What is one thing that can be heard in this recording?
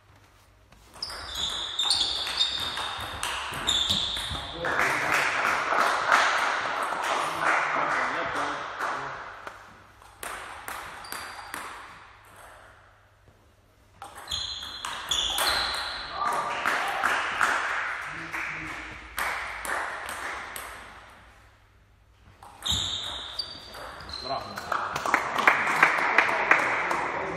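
A table tennis ball clicks rapidly back and forth between paddles and table in an echoing hall.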